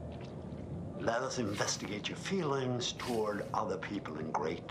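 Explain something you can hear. A middle-aged man speaks close up, intently and with feeling.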